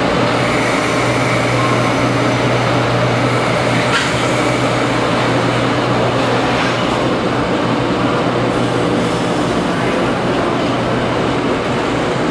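A stationary train hums steadily and low.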